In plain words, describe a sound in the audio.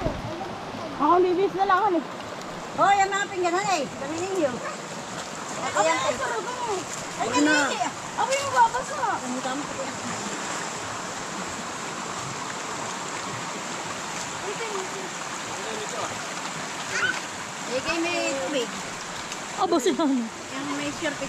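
Several women and men talk and call out nearby outdoors.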